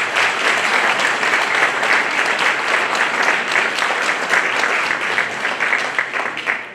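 An audience claps loudly in an echoing hall.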